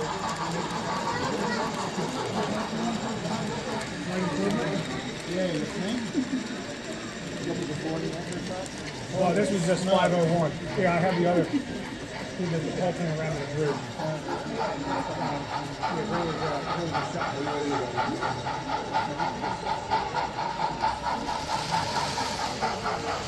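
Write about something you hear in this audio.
A model train rolls along the track, its wheels clicking over rail joints.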